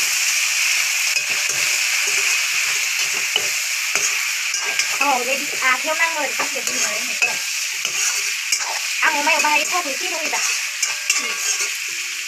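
A metal spatula scrapes against a pan.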